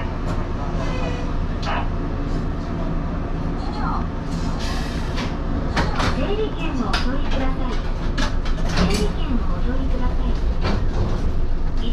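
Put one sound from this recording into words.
A train rumbles low and steady along the tracks.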